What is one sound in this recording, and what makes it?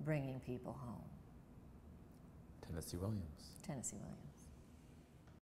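An older woman speaks calmly and close by.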